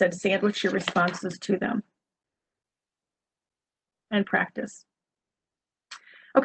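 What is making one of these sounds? A woman speaks calmly through an online call, with pauses.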